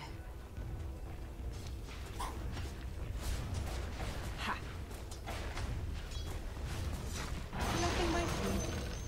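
Weapons clash and magic blasts crackle in a busy fight.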